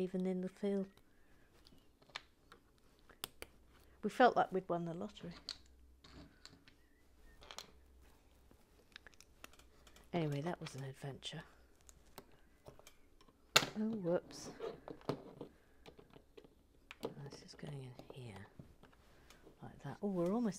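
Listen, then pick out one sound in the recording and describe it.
Small plastic pieces click and tap together close by.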